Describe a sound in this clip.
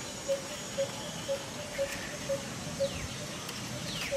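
A baby monkey squeals in high, thin cries.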